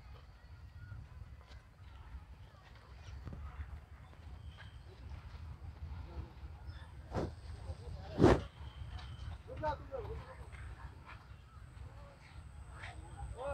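Horses' hooves thud softly on a dirt track as they walk past close by.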